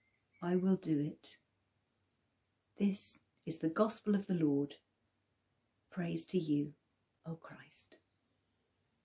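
An elderly woman speaks calmly and close up.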